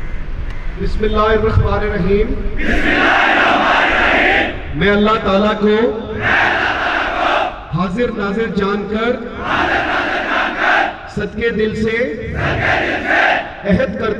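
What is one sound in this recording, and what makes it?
A man calls out loud parade commands outdoors.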